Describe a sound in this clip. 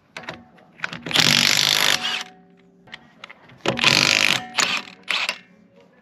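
An impact wrench whirs loudly in short bursts.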